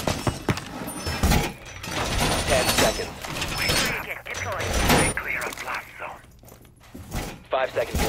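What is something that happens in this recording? Heavy metal panels clank and slam into place.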